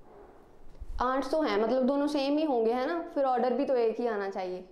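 A young woman speaks clearly into a microphone in a lecturing tone.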